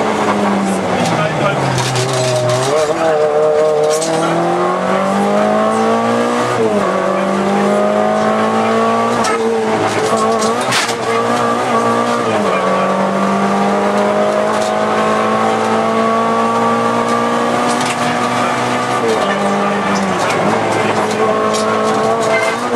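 Tyres crunch and rattle over a rough road.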